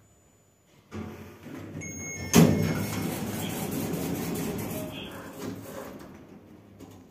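Lift doors slide open with a clunk.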